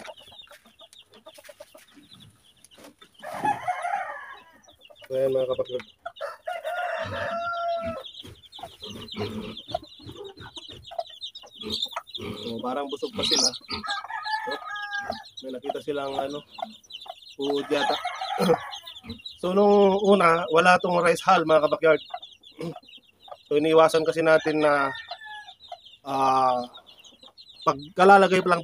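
Chicks cheep rapidly and continuously nearby.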